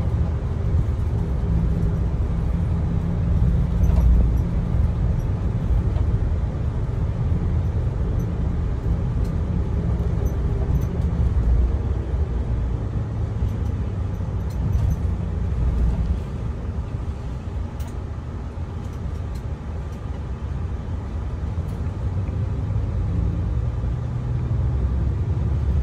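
Tyres hum on the road as the bus drives along.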